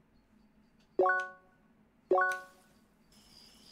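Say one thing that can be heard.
A game menu chime rings twice.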